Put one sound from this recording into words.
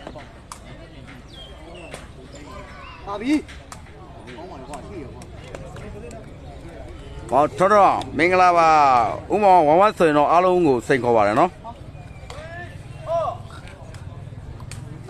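A cane ball is kicked with sharp knocks.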